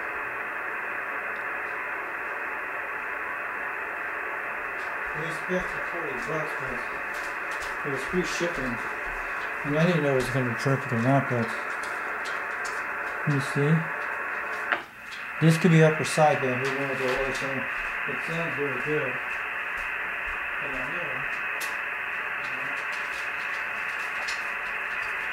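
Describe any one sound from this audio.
Static hisses steadily from a radio speaker.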